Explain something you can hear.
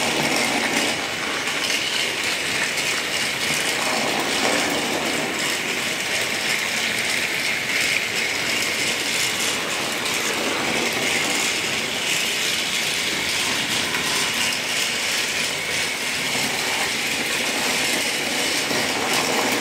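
A battery toy train whirs steadily as it runs along a plastic track.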